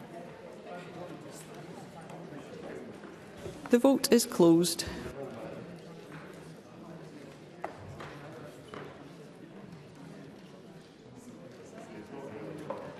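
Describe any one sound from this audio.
A crowd murmurs softly in a large echoing hall.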